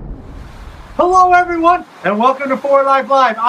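A middle-aged man speaks cheerfully close to the microphone.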